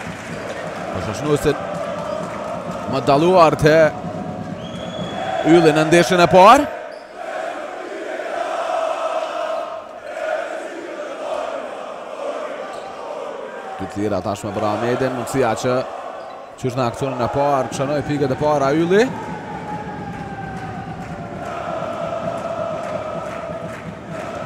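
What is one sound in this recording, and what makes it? A crowd of spectators murmurs in a large echoing hall.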